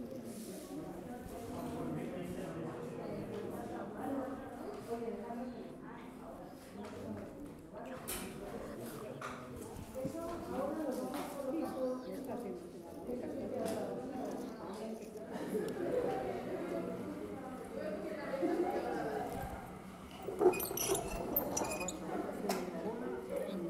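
A middle-aged woman speaks calmly.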